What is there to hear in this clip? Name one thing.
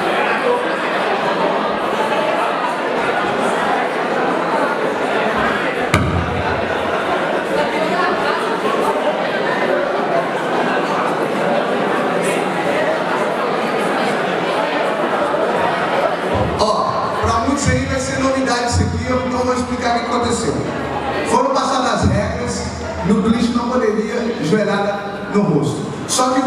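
A crowd chatters and cheers loudly in a large echoing hall.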